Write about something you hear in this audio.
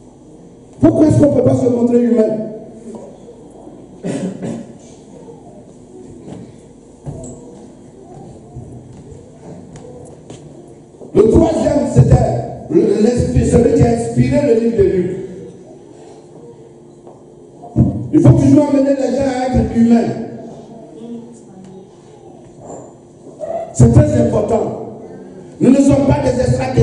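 A man preaches forcefully into a microphone in an echoing hall, in loud bursts with pauses.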